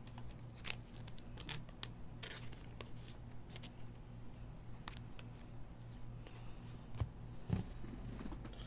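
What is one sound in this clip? Stiff trading cards rustle and click as hands shuffle through them.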